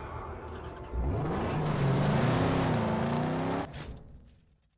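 A car engine starts and revs loudly, rising in pitch.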